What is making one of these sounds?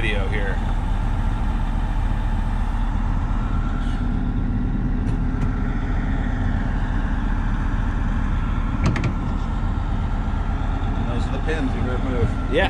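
A ceiling fan hums and whirs steadily nearby.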